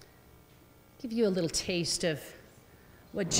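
A woman speaks briefly into a microphone in a large hall.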